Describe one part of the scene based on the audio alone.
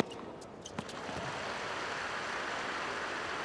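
A large crowd cheers and applauds, swelling steadily.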